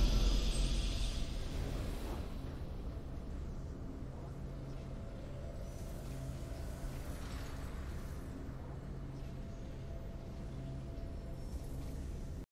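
A triumphant victory tune plays softly and steadily.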